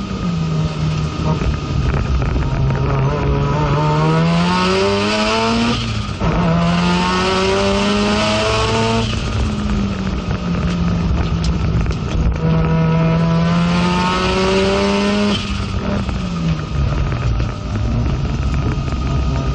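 A race car engine roars loudly from inside the cabin, revving up and dropping with each gear change.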